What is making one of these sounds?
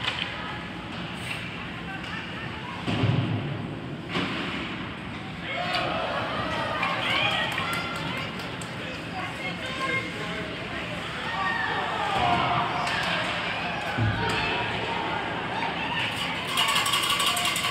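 A crowd of spectators chatters and cheers in an echoing rink.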